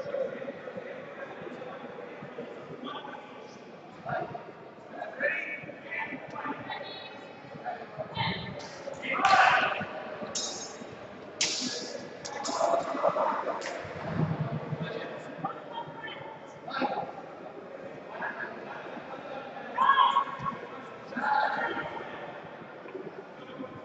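Voices of men and women echo through a large hall.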